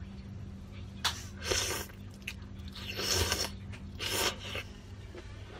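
A young woman slurps noodles loudly and close by.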